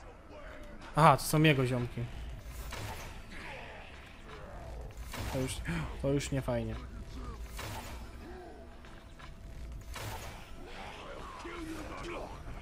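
A bowstring twangs as arrows fly off.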